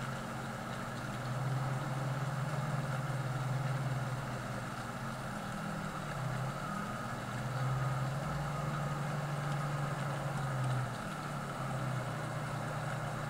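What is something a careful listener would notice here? A large harvester engine drones steadily, its pitch rising and falling.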